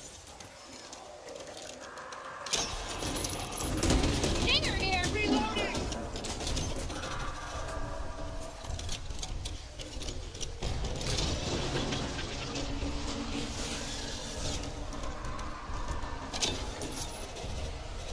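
A wooden crate creaks and clatters open, again and again.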